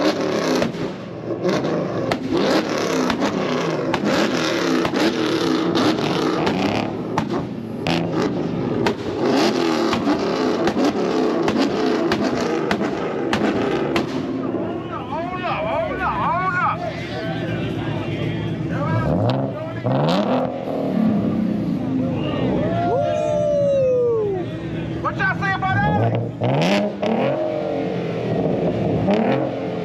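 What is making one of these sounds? A car engine revs loudly and rumbles.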